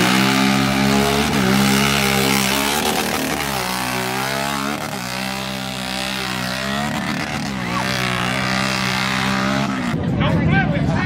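An all-terrain vehicle engine roars loudly at high revs.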